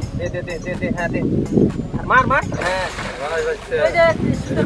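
A large fish splashes and thrashes in water.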